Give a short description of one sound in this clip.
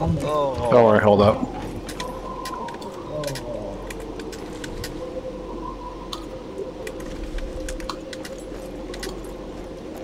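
Footsteps tap and crunch on a snowy tile roof.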